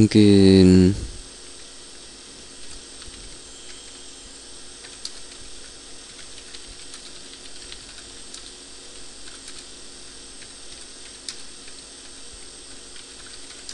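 Keys on a computer keyboard click softly as someone types.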